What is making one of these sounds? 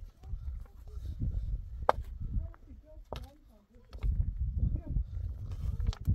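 A hand tool scrapes and knocks into stony soil.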